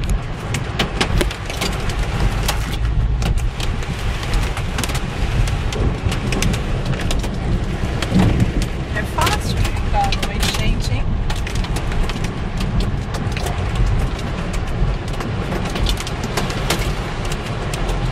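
Strong wind roars outdoors around a car.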